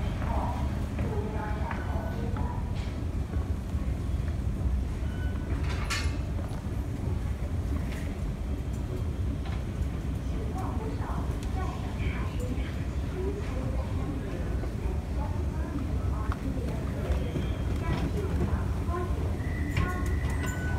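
An escalator hums and rumbles steadily.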